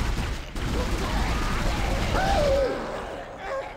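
Steam hisses steadily.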